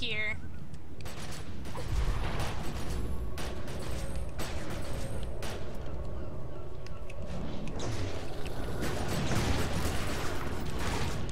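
Weapons zap and thud in a fight.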